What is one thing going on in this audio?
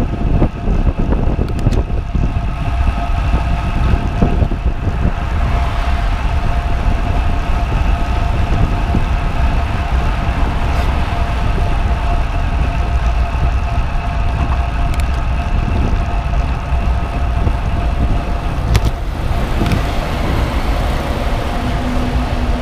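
Wind rushes loudly past, buffeting steadily outdoors.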